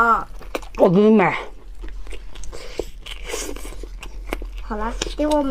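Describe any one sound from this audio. Food crunches and squelches as a young woman chews close to a microphone.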